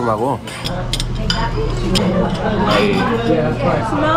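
Forks clink against plates.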